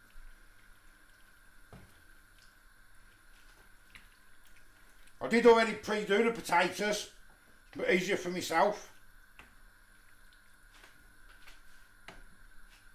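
A wooden spoon scrapes and stirs in a frying pan.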